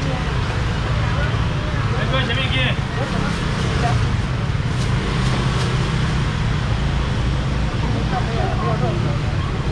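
A man talks nearby with a calm voice.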